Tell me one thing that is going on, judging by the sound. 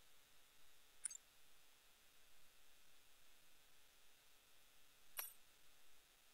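A short electronic menu chime sounds twice.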